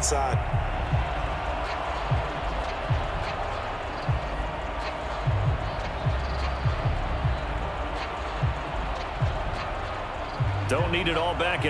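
A large crowd roars and cheers in a big stadium.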